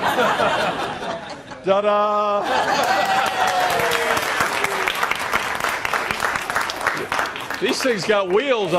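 An audience cheers and laughs.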